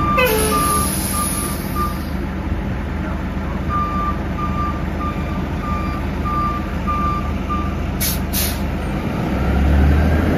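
A bus engine idles with a deep, steady rumble.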